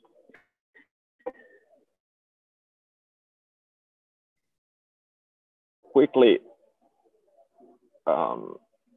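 An elderly man speaks calmly through an online call, with pauses.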